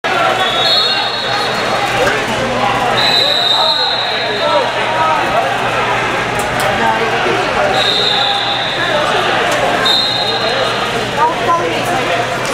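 Many people talk at once in a large echoing hall.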